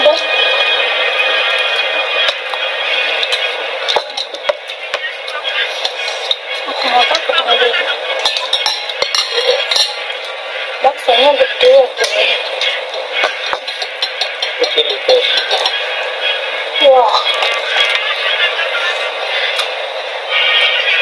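Cutlery clinks and scrapes against a bowl.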